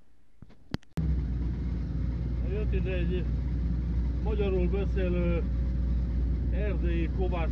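A digger engine rumbles loudly and steadily.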